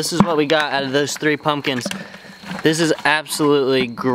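Pumpkin pulp drops with a wet scrape into a plastic bucket.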